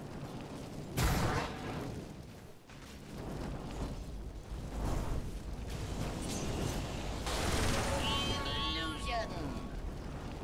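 A fiery blast whooshes and roars.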